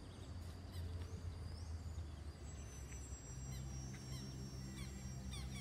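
A small propeller plane drones steadily overhead.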